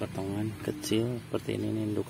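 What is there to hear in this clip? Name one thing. A knife cuts through a cactus stem.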